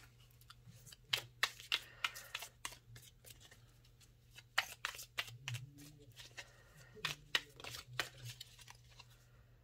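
Cards shuffle with soft, quick clicks and flicks.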